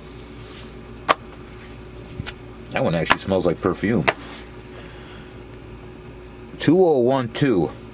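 Paper booklets rustle and flap as a hand handles them.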